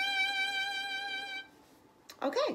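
A violin plays a long, steady, slightly wavering note up close.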